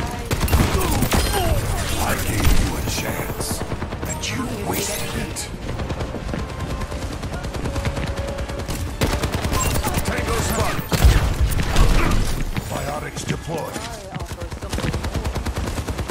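A video game gun fires rapid energy shots.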